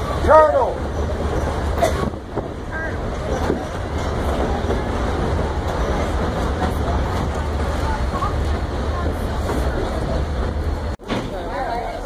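A river rushes over rocks below.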